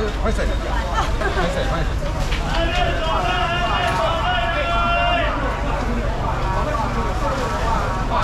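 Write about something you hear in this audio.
Several men and women chatter nearby in a busy, crowded space.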